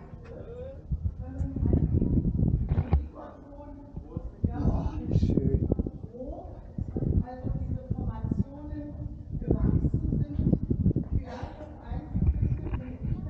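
An elderly woman talks nearby, her voice echoing.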